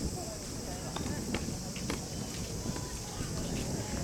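A tennis racket strikes a ball with sharp pops.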